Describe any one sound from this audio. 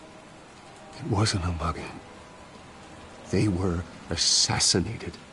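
A man speaks quietly and gravely.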